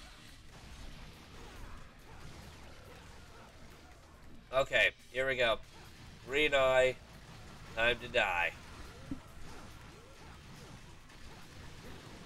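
Swords clash and slash in video game combat.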